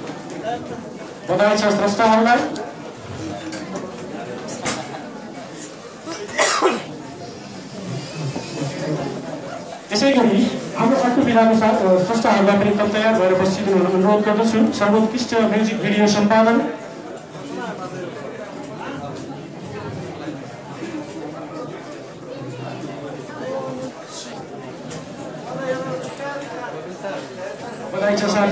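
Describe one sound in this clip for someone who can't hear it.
A crowd murmurs and chatters throughout.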